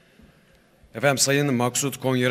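A man speaks loudly through a loudspeaker, echoing in a large hall.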